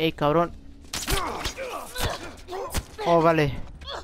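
A machete strikes a body with heavy thuds.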